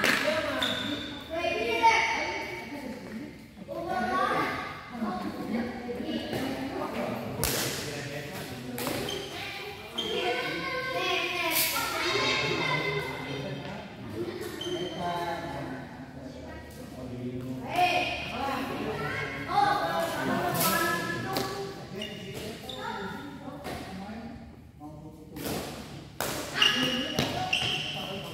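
A shuttlecock is smacked back and forth by rackets in a large echoing hall.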